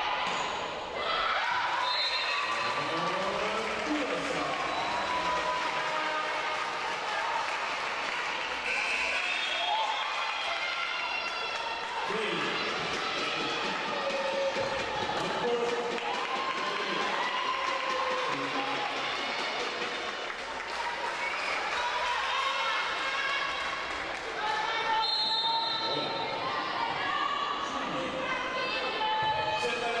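Young women call out and shout to each other in a large echoing hall.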